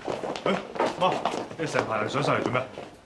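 A man asks a question with surprise.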